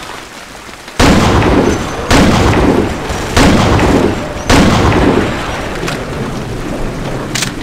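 Heavy rifle shots boom one at a time, each followed by a long ringing echo.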